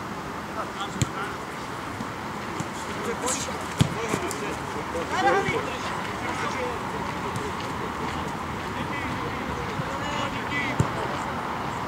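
Players kick a football on a grass field outdoors.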